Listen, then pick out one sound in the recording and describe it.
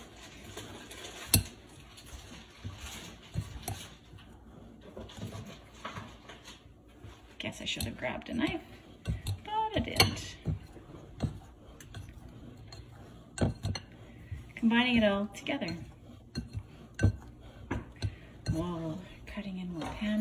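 A pastry cutter scrapes and clinks against a glass bowl.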